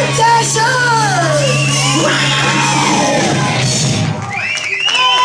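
A live rock band plays loudly.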